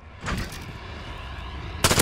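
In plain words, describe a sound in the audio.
A gun fires a rapid burst of shots.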